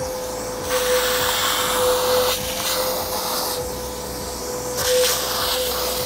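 A wet vacuum cleaner roars steadily, sucking water from a rubber mat with a slurping hiss.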